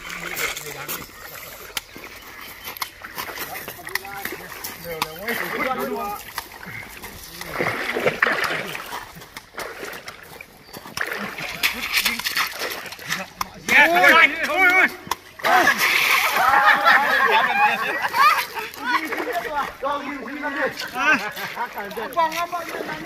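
Several young men shout and laugh outdoors.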